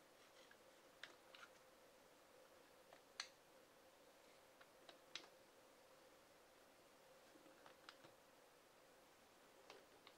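Buttons on kitchen timers click softly as a hand presses them.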